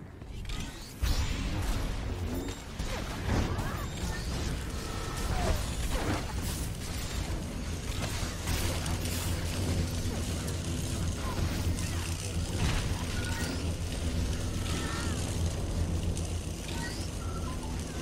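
Sci-fi energy weapons zap and crackle in a video game battle.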